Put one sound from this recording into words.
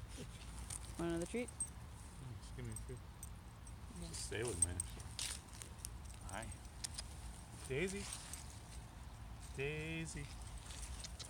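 A man speaks calmly close by, outdoors.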